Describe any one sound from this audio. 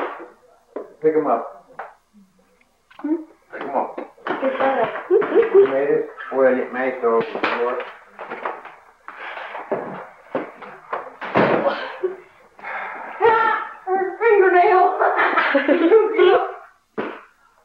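A man talks nearby in a lively way.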